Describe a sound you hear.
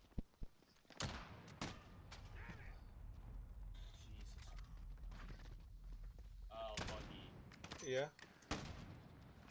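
A rifle fires sharp, single gunshots.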